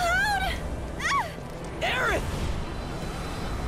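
A young man shouts a name.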